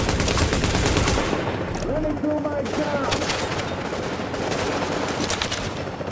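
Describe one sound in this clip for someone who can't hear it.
A helicopter's rotor thuds overhead.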